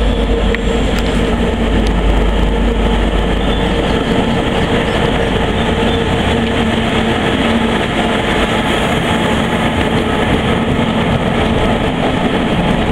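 A diesel locomotive engine rumbles and drones steadily close by.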